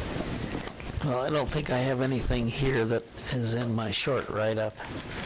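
An elderly man speaks calmly and close up through a clip-on microphone.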